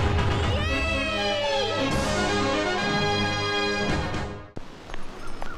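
A young woman sings brightly.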